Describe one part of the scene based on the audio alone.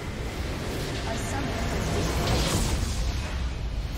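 A large explosion booms as a video game structure is destroyed.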